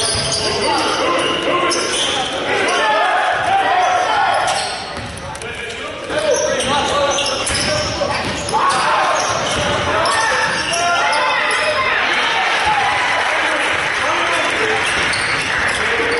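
Spectators in the stands talk and cheer.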